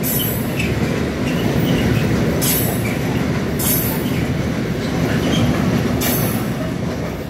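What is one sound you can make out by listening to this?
Wheels clank over rail joints.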